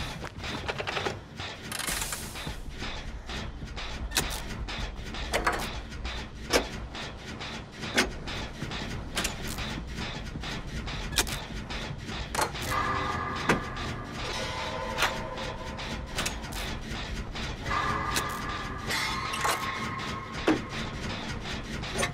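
Metal parts clink and rattle as hands tinker with an engine.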